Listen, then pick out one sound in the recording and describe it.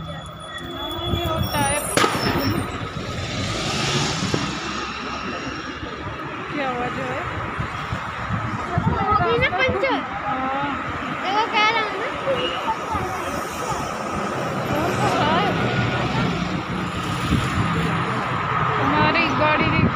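A young woman talks close by, muffled through a mask.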